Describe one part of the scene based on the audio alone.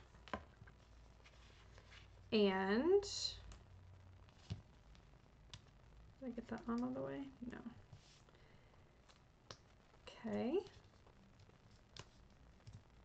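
Card stock taps and rustles as it is handled.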